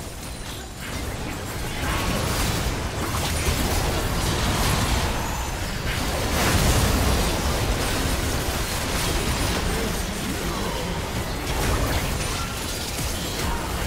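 Magic blasts and weapon clashes of a video game battle crackle and boom.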